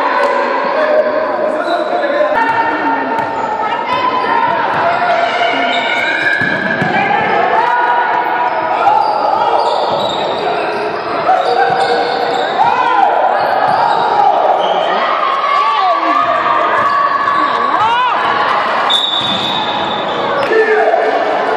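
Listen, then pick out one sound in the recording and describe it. Young players and spectators shout and call out loudly in an echoing hall.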